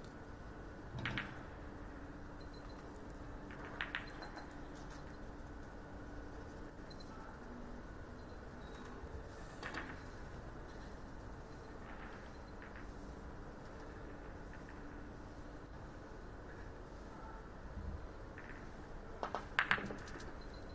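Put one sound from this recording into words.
A cue strikes a ball with a sharp tap.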